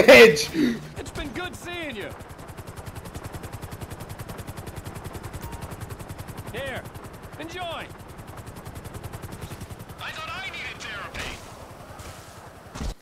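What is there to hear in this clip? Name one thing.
A helicopter's rotor chops steadily.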